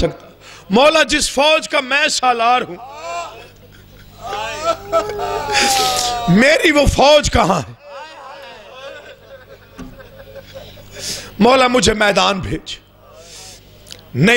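A man chants and sings with passion through a microphone, echoing through loudspeakers.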